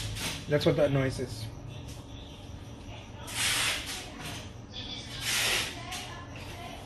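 A brush scrapes thick paint across a canvas.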